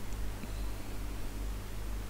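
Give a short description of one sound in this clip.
A plastic scoop stirs water in a plastic bucket.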